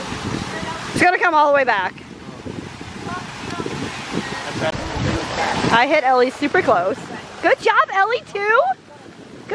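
Young women talk and exclaim with animation close by.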